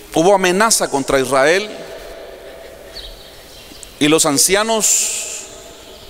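A man preaches loudly and with passion into a microphone, echoing through a large hall.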